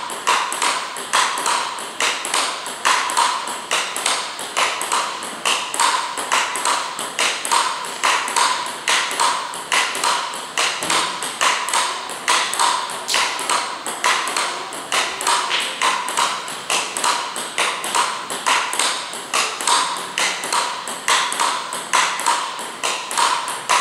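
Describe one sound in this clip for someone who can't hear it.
A ping-pong ball clicks sharply back and forth between paddles and table in a quick, steady rally.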